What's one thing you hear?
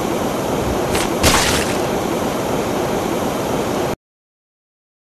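A cartoon bicycle crashes with squelching game sound effects.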